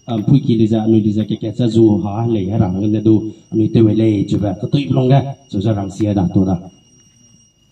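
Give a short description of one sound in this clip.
A man speaks loudly and steadily through a microphone and loudspeaker.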